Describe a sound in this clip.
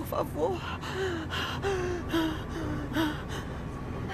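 A woman speaks quietly and tensely nearby.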